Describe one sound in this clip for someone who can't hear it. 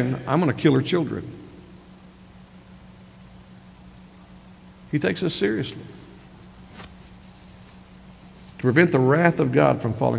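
A middle-aged man preaches emphatically into a microphone, with pauses between phrases.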